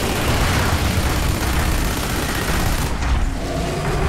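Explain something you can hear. Electric bolts crackle and sizzle.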